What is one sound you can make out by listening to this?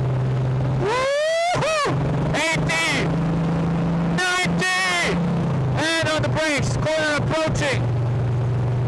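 A car engine revs up sharply through several quick gear changes.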